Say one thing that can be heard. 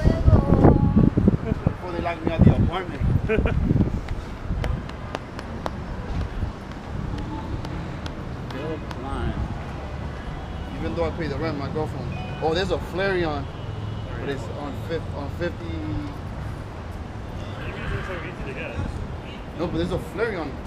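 Street traffic hums in the distance outdoors.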